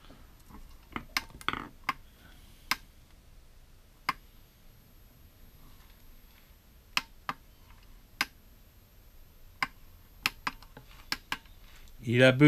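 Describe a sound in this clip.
Buttons on a small controller click as they are pressed.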